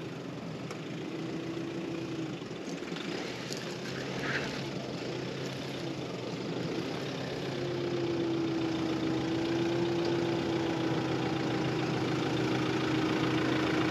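A truck engine hums in the distance and slowly grows nearer.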